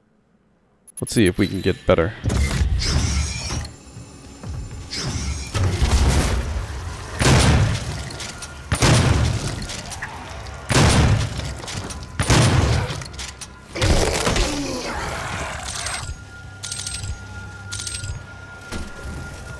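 Heavy guns fire in loud booming blasts.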